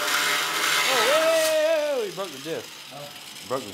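An angle grinder winds down after being switched off.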